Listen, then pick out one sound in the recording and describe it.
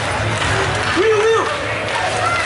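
A man shouts across an echoing ice rink.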